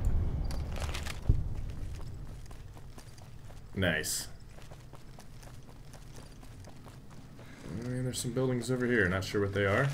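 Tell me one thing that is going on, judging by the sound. Footsteps crunch on gravel at a run.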